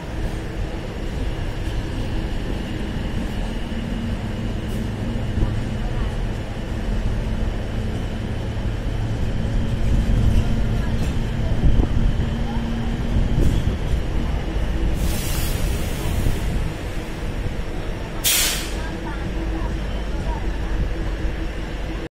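A diesel multiple unit rumbles along rails at low speed.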